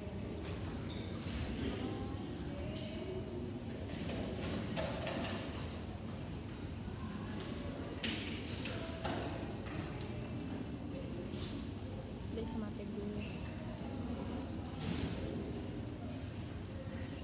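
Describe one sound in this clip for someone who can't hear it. Young men talk and chatter close by in a room with a murmur of voices.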